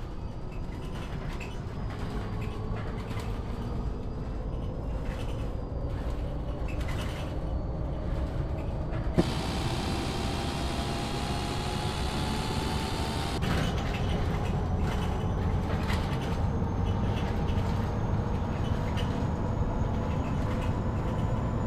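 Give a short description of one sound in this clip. A bus engine hums steadily and rises in pitch as it speeds up.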